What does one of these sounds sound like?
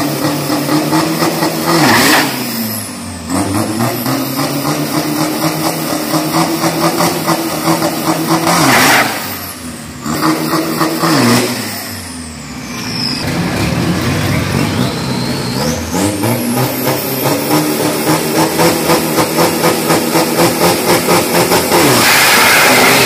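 A truck engine idles roughly and revs up and down loudly close by.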